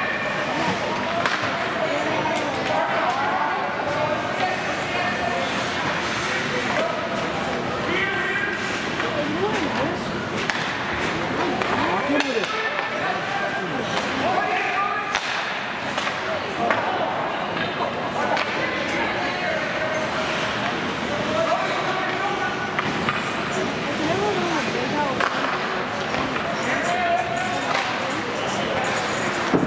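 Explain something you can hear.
Ice skates scrape and hiss across the ice.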